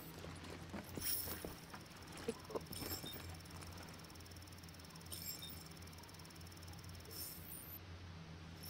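Electronic chimes beep from a game interface.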